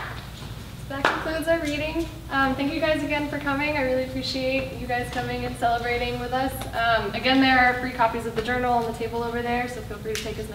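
A young woman speaks with animation to a room, close by.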